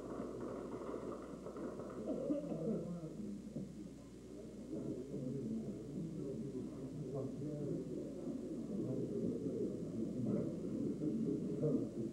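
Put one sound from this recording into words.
Several men talk at once in a room, heard from across it.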